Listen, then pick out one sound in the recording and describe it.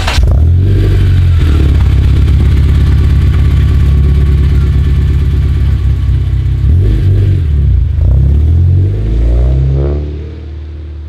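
A car engine idles with a deep, loud exhaust rumble.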